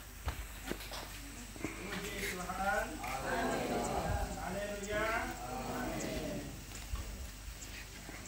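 A small crowd murmurs in the background.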